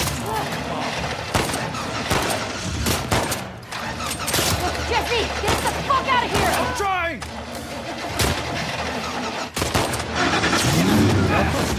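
A young man shouts urgently.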